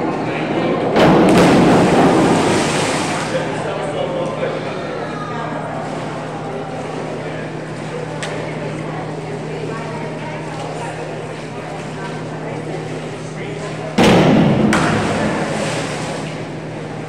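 A diver splashes into the water of an echoing indoor pool.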